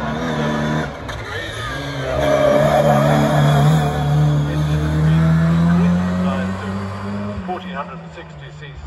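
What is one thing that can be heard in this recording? A second racing car engine revs hard as it accelerates past and fades away.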